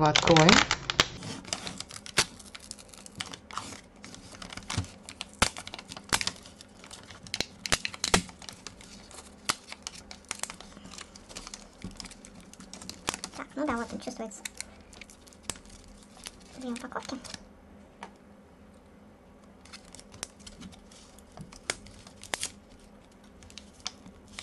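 Foil and paper packaging crinkles and rustles close by.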